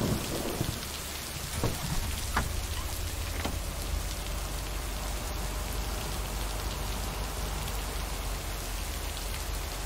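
A truck engine rumbles low and steady as the truck drives off.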